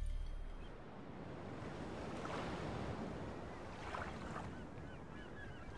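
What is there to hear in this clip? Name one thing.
Water laps and splashes gently against a wooden boat.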